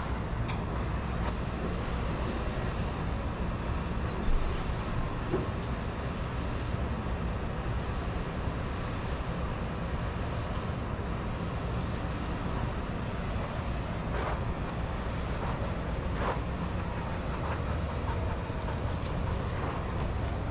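Dogs' paws patter softly on sand.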